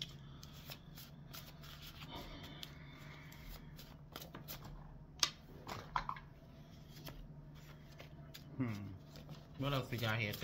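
Cards shuffle and riffle with light papery flicks.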